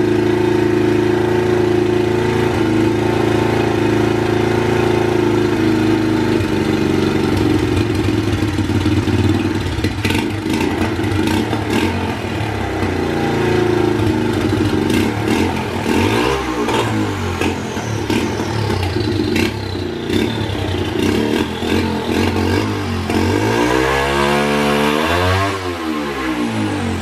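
A small motorbike engine runs loudly close by, its revs rising and falling as the throttle is twisted.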